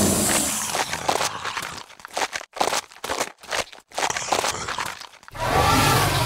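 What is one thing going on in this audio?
A cartoon creature chews and crunches noisily.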